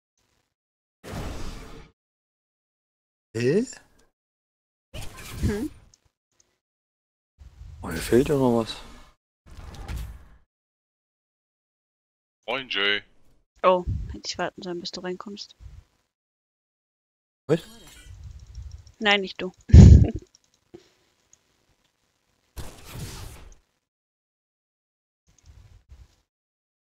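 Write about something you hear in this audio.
Short magical whooshes and chimes sound in bursts.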